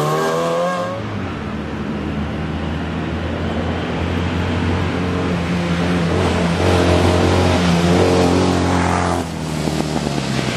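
A car engine drones steadily while approaching from a distance.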